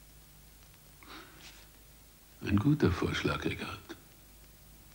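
An elderly man speaks quietly and gravely, close by.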